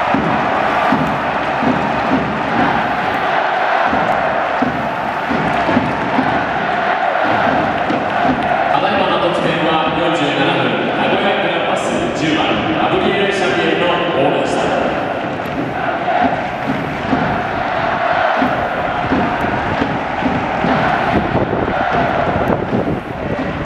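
A large stadium crowd cheers and chants loudly throughout.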